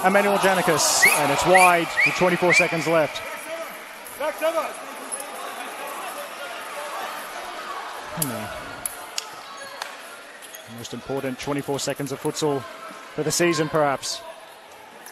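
Young players shout loudly to each other in a large echoing hall.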